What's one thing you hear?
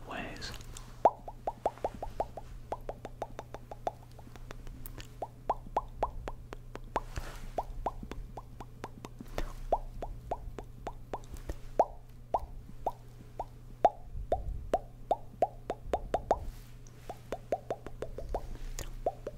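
A man makes quick wet mouth clicks and pops close into a microphone.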